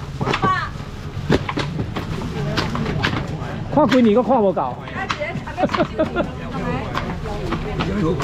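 Plastic bags rustle and clatter.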